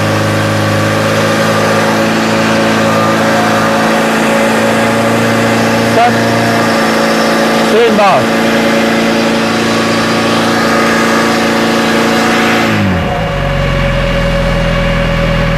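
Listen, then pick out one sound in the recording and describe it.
Water sprays hissing from a hose.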